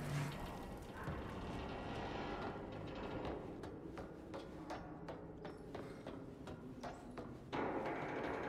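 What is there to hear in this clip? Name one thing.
Footsteps thud on wooden stairs at a steady pace.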